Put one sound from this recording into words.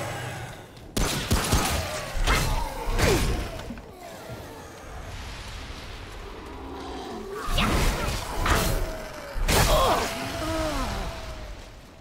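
A monster shrieks and snarls up close.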